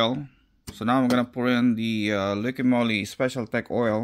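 Plastic cups tap against each other.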